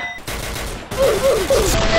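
Rapid gunfire rattles from an assault rifle.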